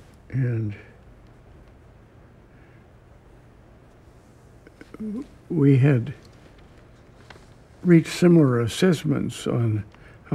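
An elderly man speaks slowly and haltingly, close to a microphone, with long pauses.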